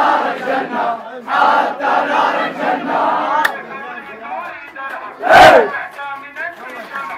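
A crowd of young people sings along loudly close by.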